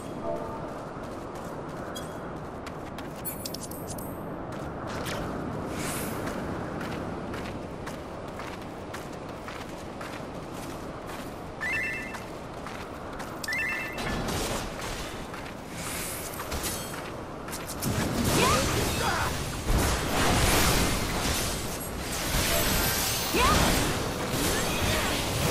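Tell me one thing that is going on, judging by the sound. Swords and spells clash and burst in a fight.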